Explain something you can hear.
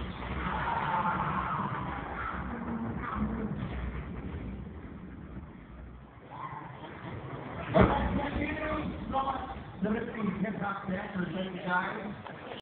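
A crowd of young people cheers and shouts nearby in a large echoing hall.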